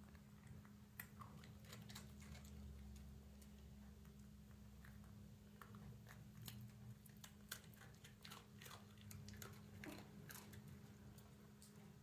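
A dog licks and nibbles at a treat with soft clicking sounds.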